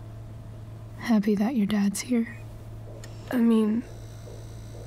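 A woman asks a question calmly and quietly.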